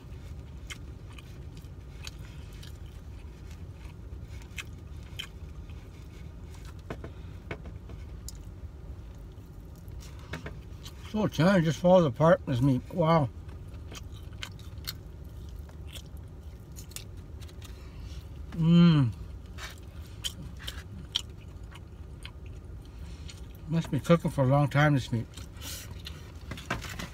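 A plastic fork scrapes and taps in a foam food container.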